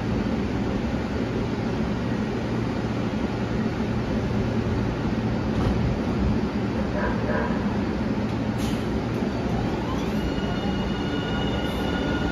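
A light rail train rumbles steadily alongside.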